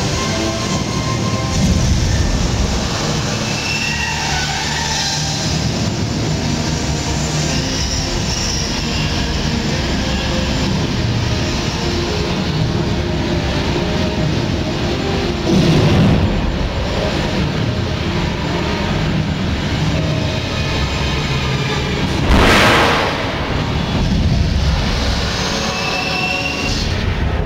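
Flames roar and whoosh in bursts.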